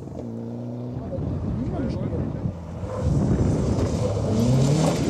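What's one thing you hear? A second rally car engine roars as it approaches and passes close by.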